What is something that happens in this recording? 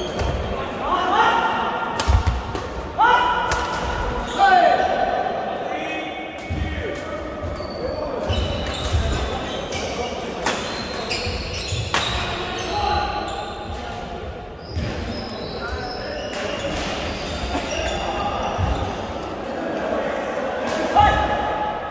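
Rubber shoes squeak sharply on a hall floor.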